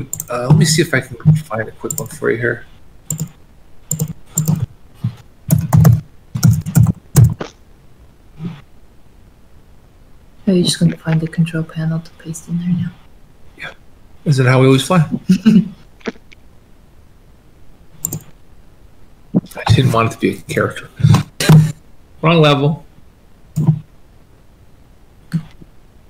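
A man talks casually over an online call.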